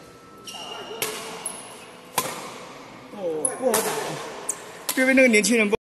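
Shuttlecocks are struck with rackets with sharp pops in a large echoing hall.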